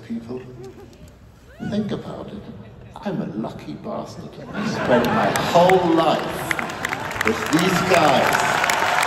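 A man sings through loudspeakers in a large echoing hall.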